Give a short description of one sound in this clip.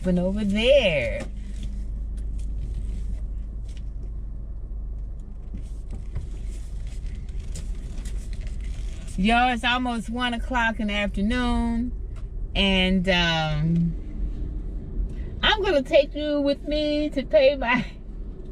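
A steady low engine hum runs inside a car.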